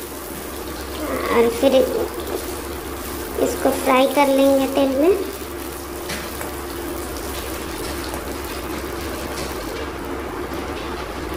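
Oil sizzles as vegetables fry in a wok.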